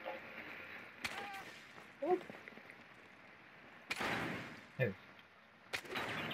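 Gunshots fire in sharp, loud bursts.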